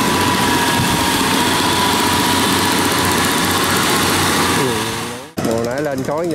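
A small engine runs loudly and steadily.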